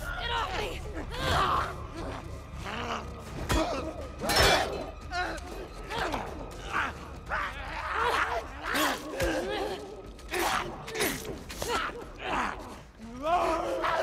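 Heavy blows thud and smack again and again.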